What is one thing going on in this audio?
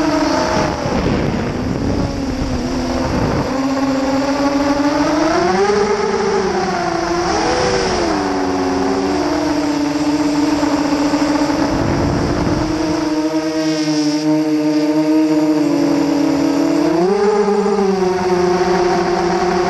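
A drone's propellers whine steadily, rising and falling in pitch as it flies.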